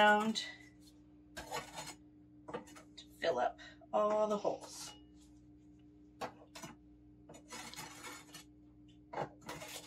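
A spatula scrapes paste across a plastic tray.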